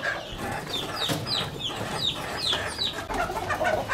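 Chicks peep.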